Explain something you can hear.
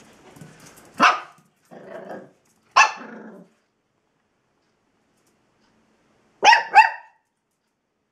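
A small dog yaps sharply a few times, close by.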